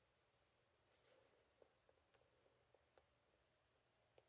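A stamp taps softly onto paper.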